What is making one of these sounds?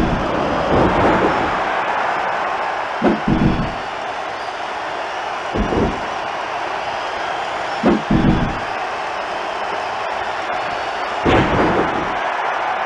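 Heavy thuds of bodies hitting a wrestling mat ring out now and then.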